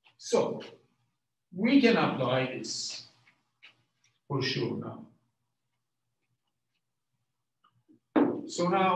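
A man lectures calmly through a microphone, in short phrases with pauses.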